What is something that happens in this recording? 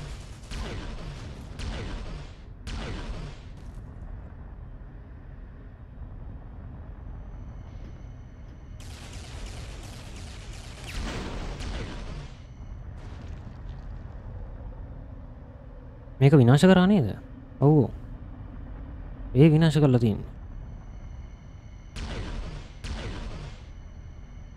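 Energy blasts whoosh and boom loudly.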